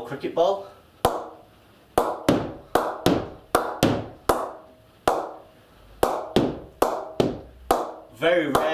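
A cricket ball knocks repeatedly against a wooden bat.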